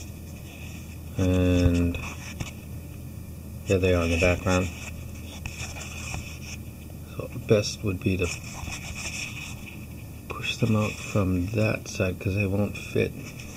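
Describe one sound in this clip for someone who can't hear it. Hands rub and tap against a stiff box.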